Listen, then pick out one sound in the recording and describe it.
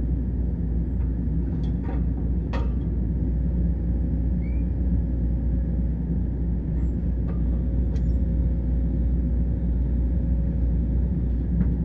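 A shovel scrapes and clinks against earth and stone.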